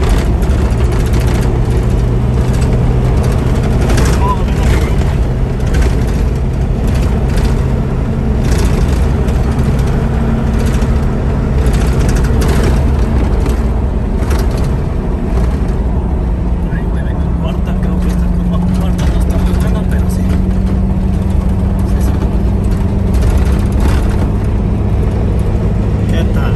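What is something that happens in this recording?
Tyres rumble on a rough paved road.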